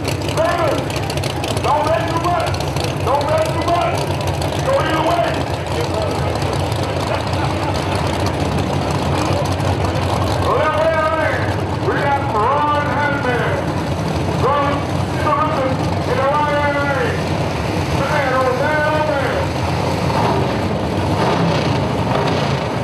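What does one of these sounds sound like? A race car engine roars loudly and revs in repeated bursts outdoors.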